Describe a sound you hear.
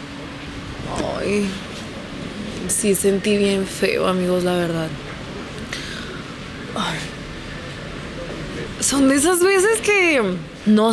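A young woman speaks expressively into a close microphone.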